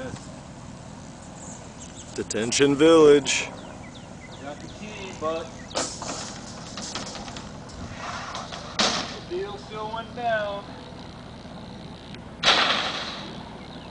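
A wire metal grate rattles and clanks as it is handled.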